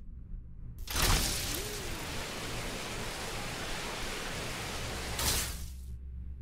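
A grappling line whooshes and whirs as a figure swings through the air.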